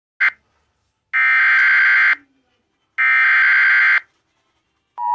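Harsh electronic buzzing bursts play three times through a small speaker.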